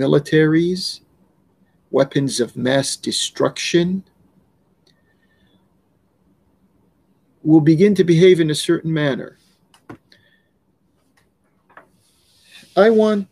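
An older man speaks calmly and earnestly, heard close through a microphone, with pauses.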